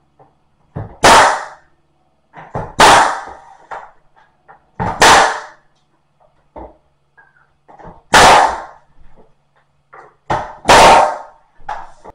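A nail gun fires sharply into wood several times.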